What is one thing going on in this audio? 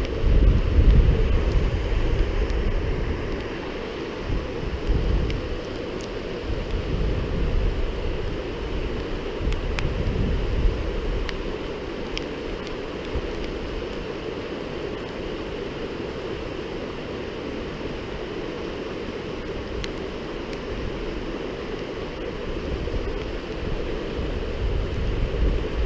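A river rushes steadily over rocks nearby.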